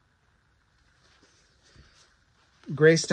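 A paperback book rustles as it is handled.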